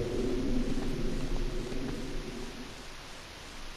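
A portal hums and swirls with a low, wavering drone.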